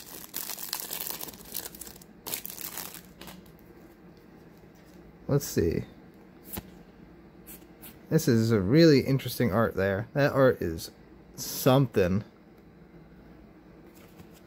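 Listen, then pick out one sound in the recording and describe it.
Playing cards slide and flick against each other.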